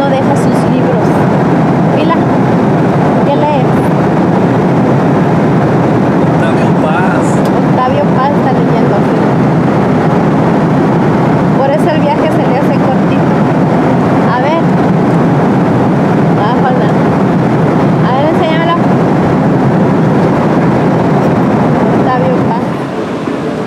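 Aircraft engines drone steadily inside a cabin.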